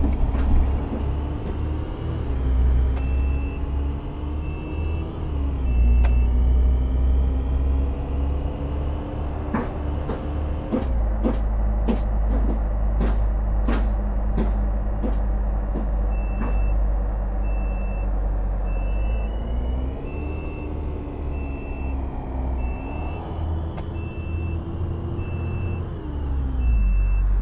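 A bus engine hums steadily, its pitch rising and falling as it speeds up and slows down.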